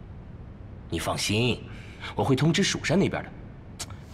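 A middle-aged man speaks calmly and firmly, close by.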